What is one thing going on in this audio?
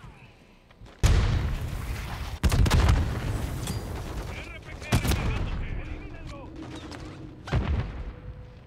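Loud explosions boom close by.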